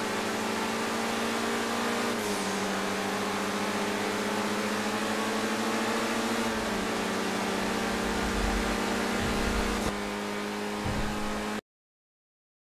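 A car engine hums steadily and shifts pitch as the car drives.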